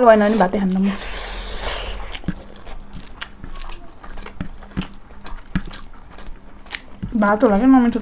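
Young women chew and smack their lips close to a microphone.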